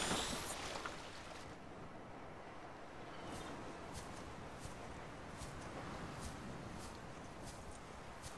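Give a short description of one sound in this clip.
Small waves lap gently on a shore.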